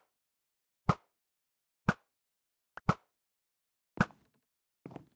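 Wooden blocks are placed one after another with short soft thuds.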